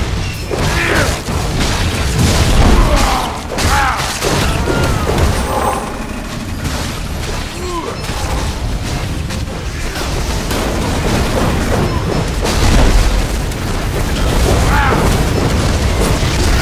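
Magic blasts crackle and boom in a fast fight.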